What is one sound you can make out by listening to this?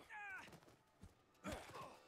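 A wooden bat strikes a man with dull thuds.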